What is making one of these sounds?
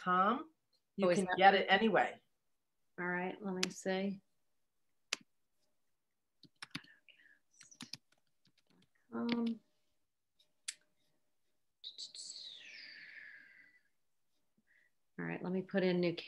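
An older woman speaks calmly over an online call, with pauses.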